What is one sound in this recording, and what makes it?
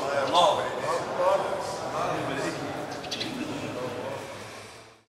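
A man speaks with feeling through a microphone in an echoing hall, then fades away.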